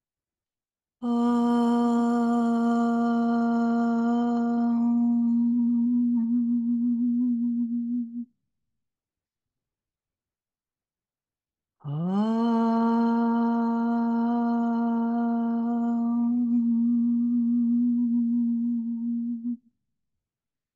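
An elderly woman chants long, steady held notes close to a microphone.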